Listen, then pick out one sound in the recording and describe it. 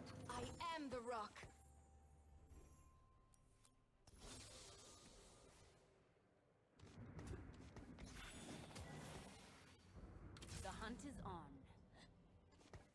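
Video game sound effects chime and clash.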